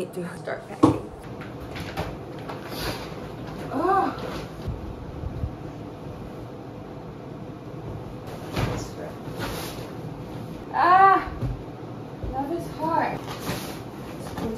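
Bedding and a plastic bag rustle as they are stuffed and moved.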